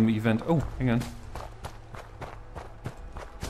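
Footsteps crunch on dry ground.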